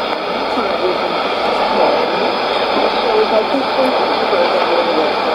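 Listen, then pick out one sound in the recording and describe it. A shortwave radio plays a faint voice through heavy static and hiss.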